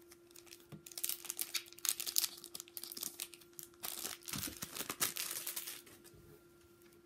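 A foil wrapper crinkles and rustles in someone's hands.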